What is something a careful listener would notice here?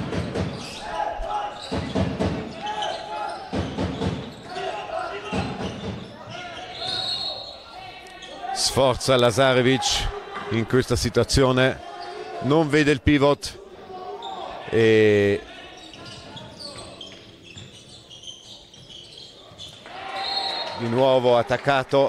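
A ball bounces on a hard wooden floor in a large echoing hall.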